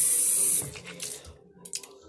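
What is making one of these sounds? A boy spits into a sink.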